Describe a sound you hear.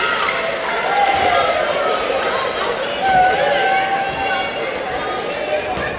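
Players shout and cheer after the point.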